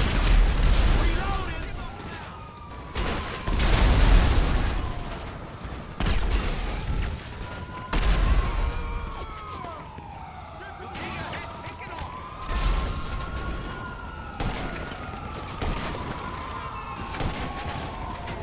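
Police sirens wail and rise and fall.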